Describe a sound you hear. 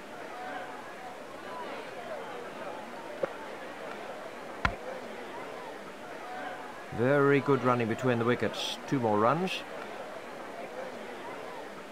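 A large crowd murmurs steadily in the distance.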